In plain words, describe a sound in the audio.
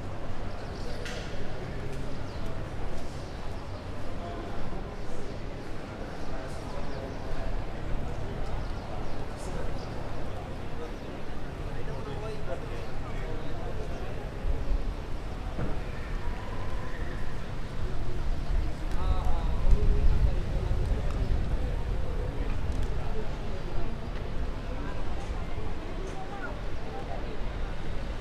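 A crowd murmurs far off outdoors.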